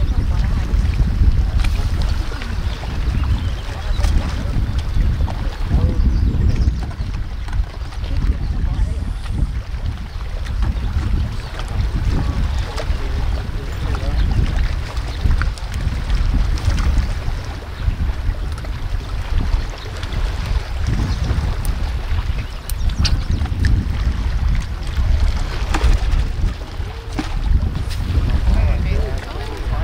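Waves lap against rocks along the shore.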